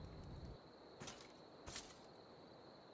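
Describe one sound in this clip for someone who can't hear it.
Footsteps thud softly on a dirt path.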